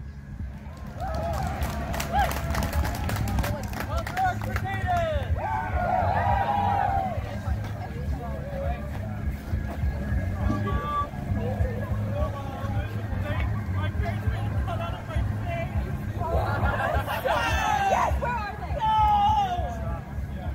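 A crowd of people chatters and cheers nearby.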